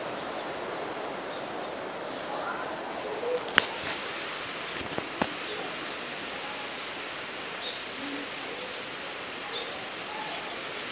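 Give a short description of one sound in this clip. Hay rustles in a plastic feeder.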